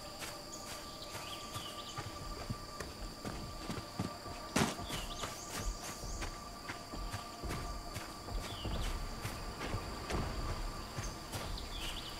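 Footsteps crunch steadily over the ground.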